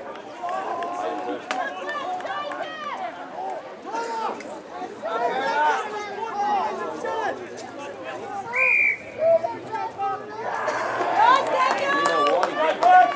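Young men shout and argue with one another outdoors.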